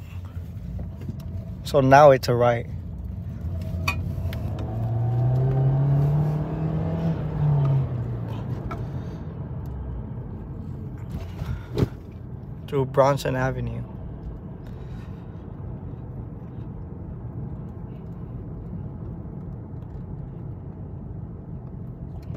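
A car engine hums steadily while driving, heard from inside the car.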